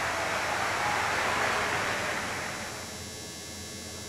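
A crowd applauds and then fades.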